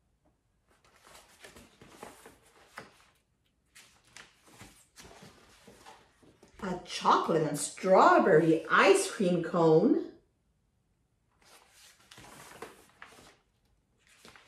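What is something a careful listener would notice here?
Paper pages of a book rustle as they turn.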